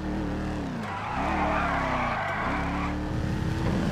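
Tyres screech on the road as a car turns.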